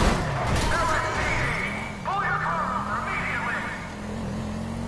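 Tyres squeal on the road.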